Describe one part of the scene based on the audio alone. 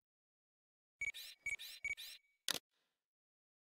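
Soft electronic chimes blip in quick succession.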